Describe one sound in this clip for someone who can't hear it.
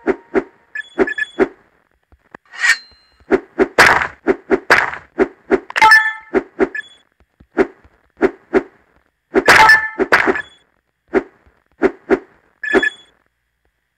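Bright chiming game sounds ring out as coins are collected.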